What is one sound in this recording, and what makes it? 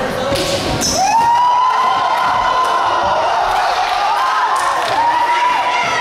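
A crowd screams loudly and steadily.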